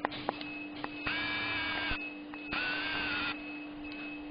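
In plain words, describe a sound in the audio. A dental instrument whines in short bursts.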